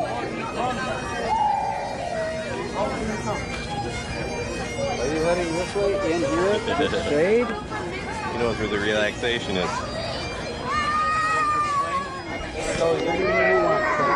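A crowd of men and women chatters outdoors nearby.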